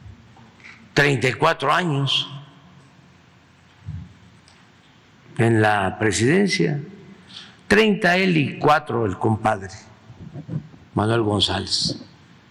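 An elderly man speaks calmly and slowly through a microphone in a large echoing hall, with long pauses.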